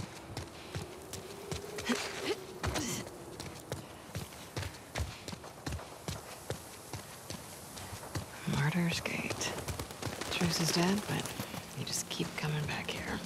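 Footsteps run quickly over hard ground and gravel.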